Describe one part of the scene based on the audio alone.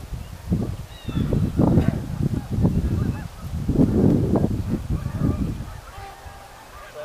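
Wind gusts across an open outdoor space, rumbling against the microphone.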